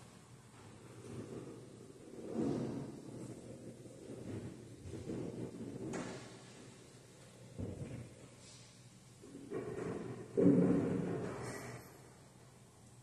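Footsteps thud on a wooden floor in an echoing hall.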